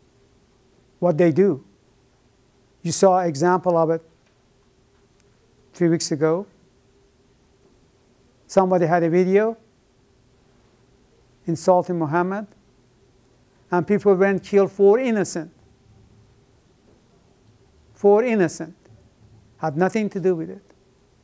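An elderly man speaks calmly in short phrases with pauses, close by.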